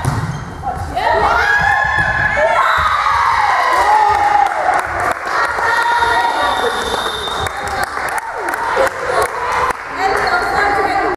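Young women shout and cheer in an echoing sports hall.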